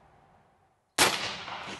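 A rifle fires a single loud shot close by.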